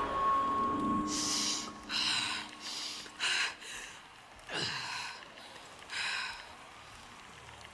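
A young woman breathes and sobs shakily close by.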